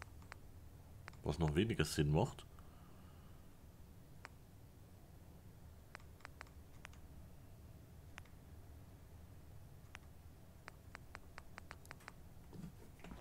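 Soft menu clicks tick one after another.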